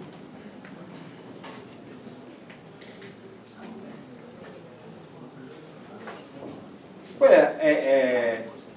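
A man speaks out loud as he lectures nearby.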